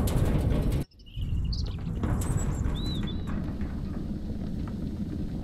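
A fire roars steadily in a furnace.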